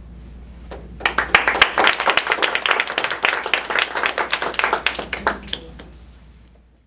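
An audience claps loudly, then the clapping dies away.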